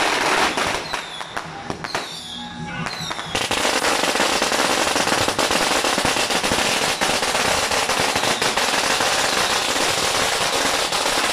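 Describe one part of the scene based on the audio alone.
Firecrackers crackle and bang loudly nearby.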